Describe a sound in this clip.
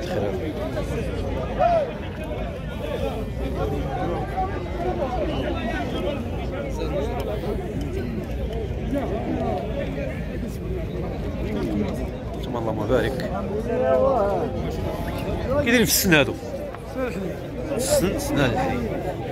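A crowd of men chatters nearby outdoors.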